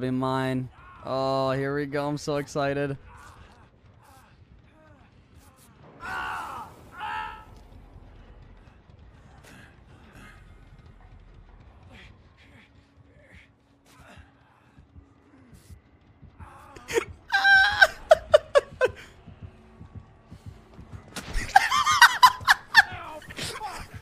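A man groans and cries out in pain.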